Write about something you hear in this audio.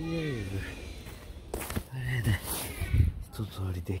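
Footsteps crunch on dry grass close by.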